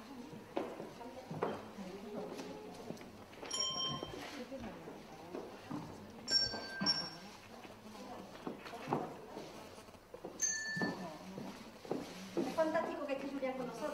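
Young people talk quietly among themselves in an echoing hall.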